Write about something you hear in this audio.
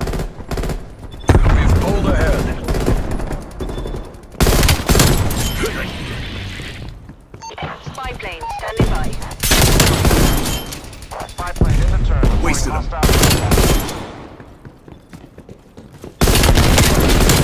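Rifle shots fire in loud bursts.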